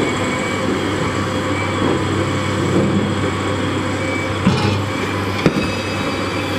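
Rocks clatter and thud as a digger bucket scoops them.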